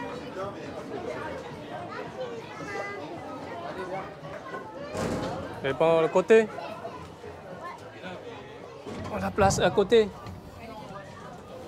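Children's voices chatter nearby.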